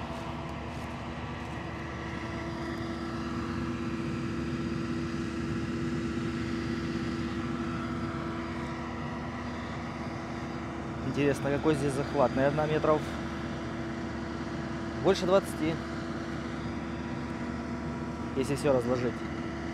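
Slurry injector tines scrape through the soil.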